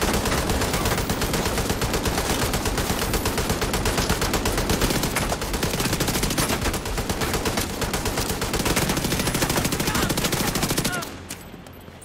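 Rapid gunfire rattles in fast bursts.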